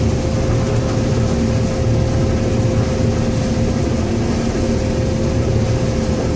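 Combine harvester engines drone steadily close by.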